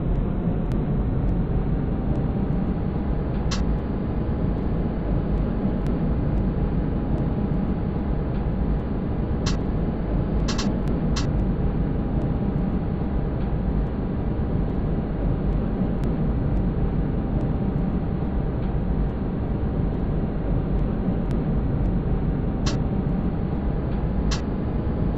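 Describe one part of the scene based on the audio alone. A tram rumbles steadily along its rails with a low motor hum.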